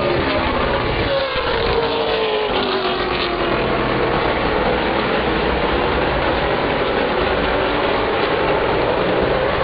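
Race car engines roar loudly as they speed around the track.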